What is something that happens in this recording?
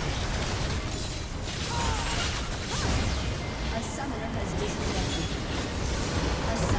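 Game spell effects and combat sounds clash and burst in quick succession.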